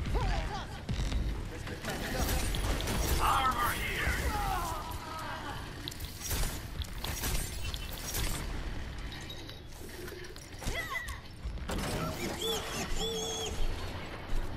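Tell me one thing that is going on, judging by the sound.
A laser gun fires in rapid crackling bursts.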